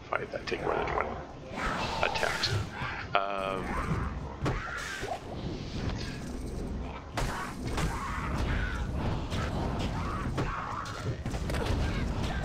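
Spells crackle and explosions boom in a video game.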